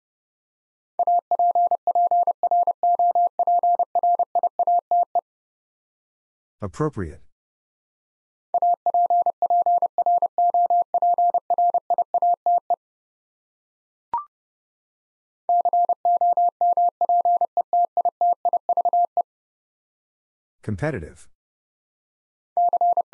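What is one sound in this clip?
Morse code beeps out in quick bursts of a steady tone.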